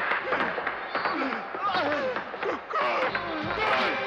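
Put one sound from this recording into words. A man sobs and wails in anguish.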